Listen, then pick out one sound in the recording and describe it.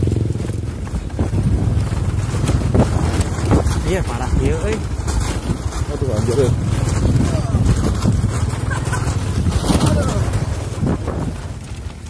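Motorcycle engines putter nearby on a rough track.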